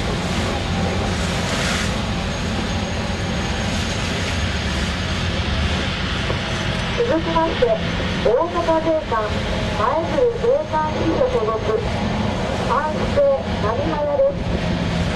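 Waves wash and churn on the open sea.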